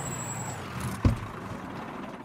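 A truck door thumps shut.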